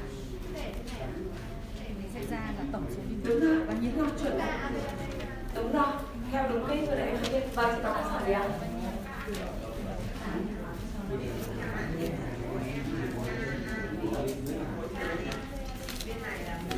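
A woman speaks with animation through a microphone and loudspeaker in a room with some echo.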